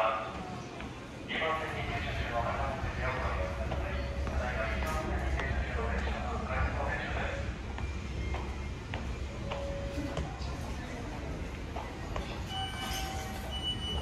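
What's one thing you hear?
Footsteps climb stone stairs in an echoing hall.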